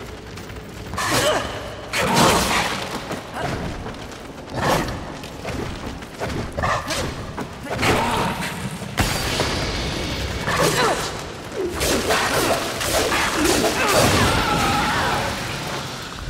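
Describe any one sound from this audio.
Metal blades slash and strike in a fight.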